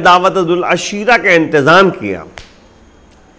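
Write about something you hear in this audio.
A middle-aged man speaks emphatically into a close microphone.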